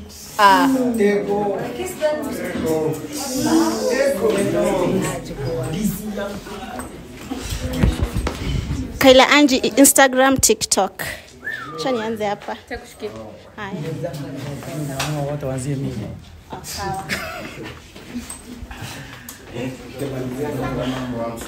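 Young women talk and laugh with animation nearby.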